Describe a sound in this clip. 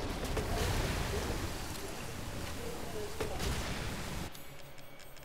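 A rifle fires repeatedly.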